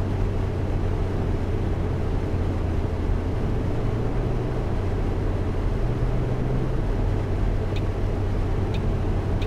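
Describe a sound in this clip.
A bus engine hums steadily with a low drone.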